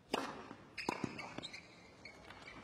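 Tennis balls are struck with sharp pops of a racket.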